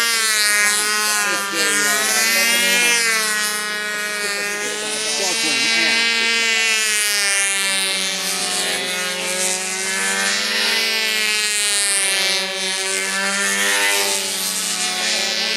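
A model plane's engine whines overhead, rising and falling in pitch as it passes.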